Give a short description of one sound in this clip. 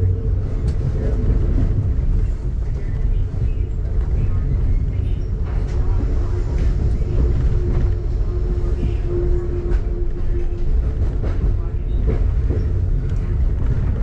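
A car engine rumbles low and steady.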